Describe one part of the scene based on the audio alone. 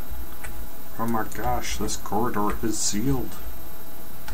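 A man speaks briefly and calmly into a close microphone.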